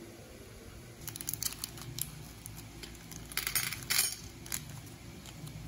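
Plastic candy wrappers crinkle and rustle.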